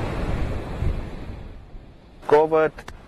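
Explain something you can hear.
Waves crash and surge against rocks.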